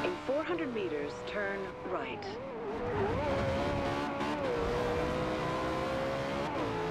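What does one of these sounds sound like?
A sports car engine roars, its pitch rising and falling.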